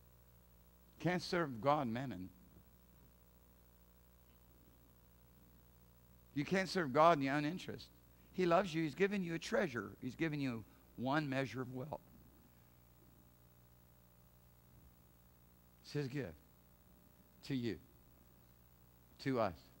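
A middle-aged man speaks with animation through a microphone, with long pauses.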